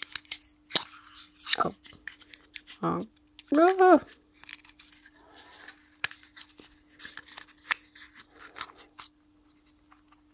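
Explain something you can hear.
Small wooden pieces click and tap together.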